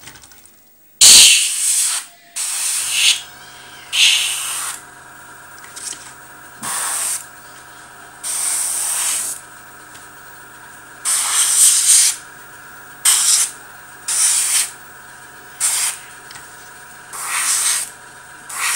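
An airbrush hisses in short, repeated bursts.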